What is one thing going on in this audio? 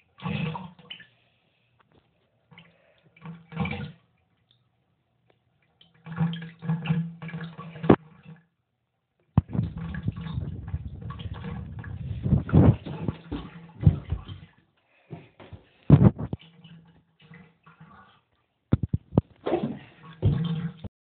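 Water gurgles and bubbles down a drain in bursts.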